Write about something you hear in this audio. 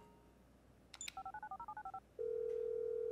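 Phone keys beep as a number is dialled.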